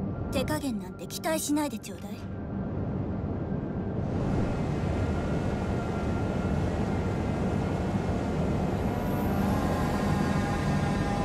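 Water rushes and splashes against a ship's hull.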